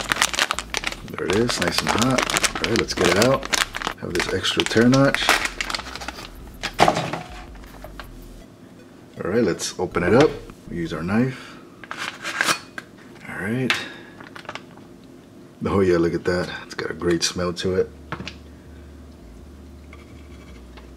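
A plastic pouch crinkles and rustles in hands.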